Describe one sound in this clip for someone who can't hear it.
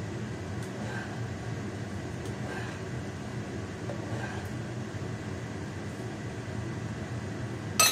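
A ladle scrapes and stirs inside a metal pot.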